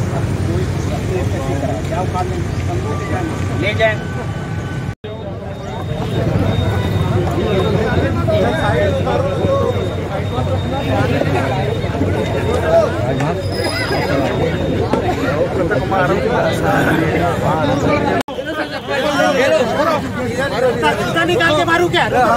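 A crowd of men and women talk and murmur all around, close by, outdoors.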